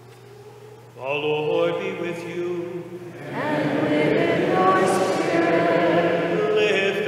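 A man sings a slow chant through a microphone in a large echoing hall.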